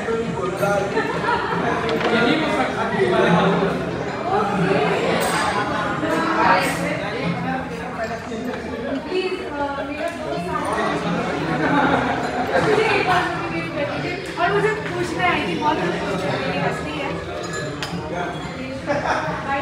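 Serving utensils clink against dishes.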